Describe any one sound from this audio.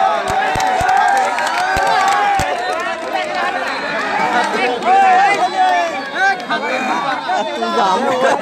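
A large crowd outdoors cheers and shouts loudly.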